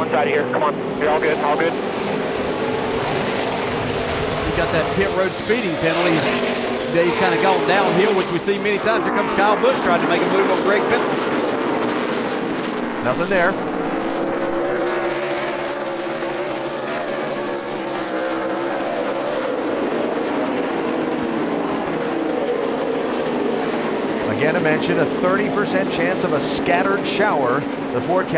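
Race car engines roar loudly as they speed past.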